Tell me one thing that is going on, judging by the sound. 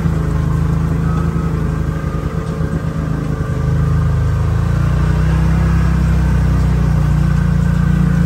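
An engine rumbles steadily close by, rising in pitch as it speeds up.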